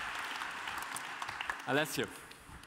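An audience claps in a hall.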